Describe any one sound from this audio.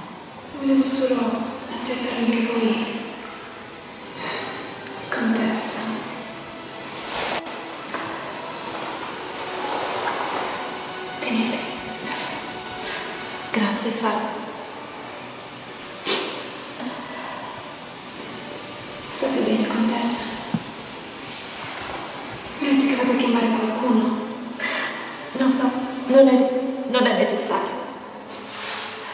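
Women talk calmly through loudspeakers in a large echoing hall.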